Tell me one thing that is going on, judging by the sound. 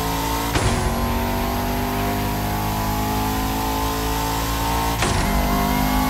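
A car engine drops in pitch briefly as gears shift.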